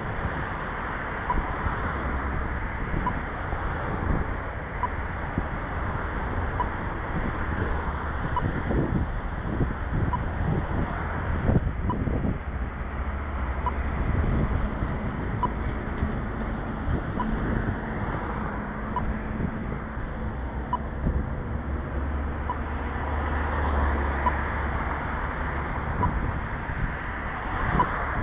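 Cars and trucks drive past on a nearby road.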